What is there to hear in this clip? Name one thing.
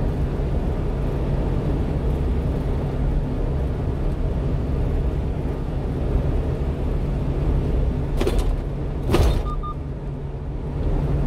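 Tyres rumble on a road surface.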